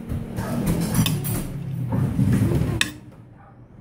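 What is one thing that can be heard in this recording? A knife and fork clink against a plate.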